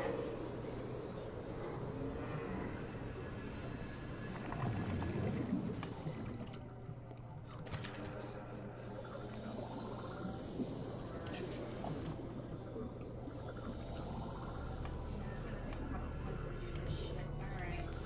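An underwater vehicle hums steadily as it glides along.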